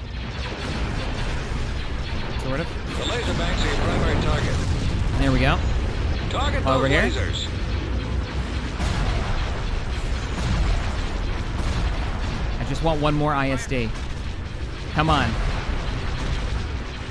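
Low engines rumble steadily.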